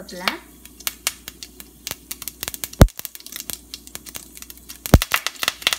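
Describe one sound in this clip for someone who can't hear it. Leaves sizzle as they drop into hot oil.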